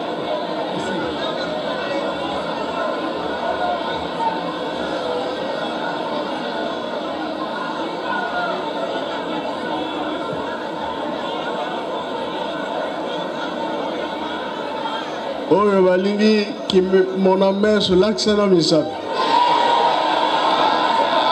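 An elderly man speaks forcefully through a microphone and loudspeaker.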